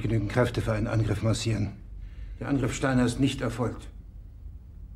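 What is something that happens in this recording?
A man speaks gravely and firmly, close by.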